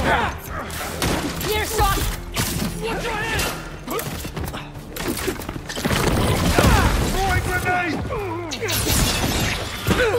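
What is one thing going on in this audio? Punches and kicks thud in a video game fight.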